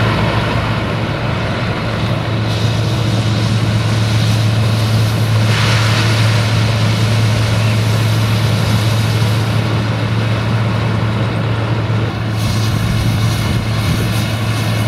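A harvester roars as it cuts and chops corn stalks.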